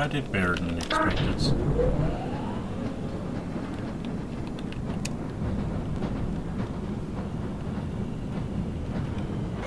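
A rail cart rumbles along metal tracks.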